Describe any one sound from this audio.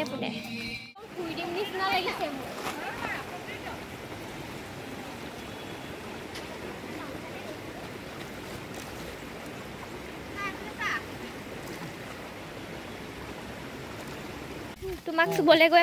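A shallow stream ripples and splashes over stones.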